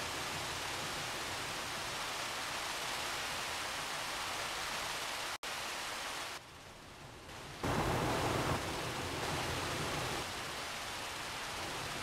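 Water hoses spray with a steady hiss.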